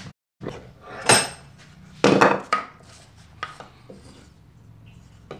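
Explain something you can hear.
Wooden pieces knock together on a workbench.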